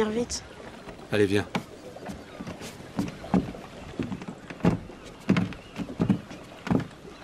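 Footsteps thud on a wooden walkway.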